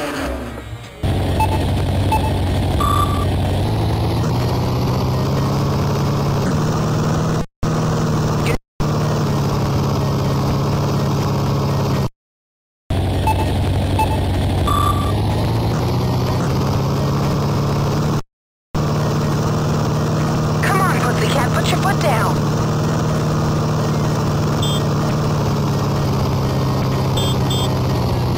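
A video game engine hums and buzzes steadily as a small vehicle drives.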